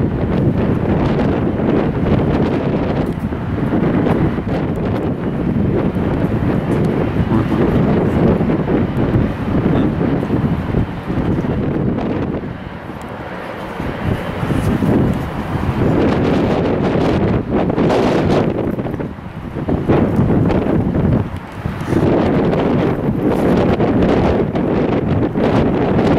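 A jet airliner's engines roar and whine as it taxis slowly nearby.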